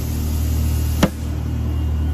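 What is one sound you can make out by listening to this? A cooler lid shuts with a single hard thud.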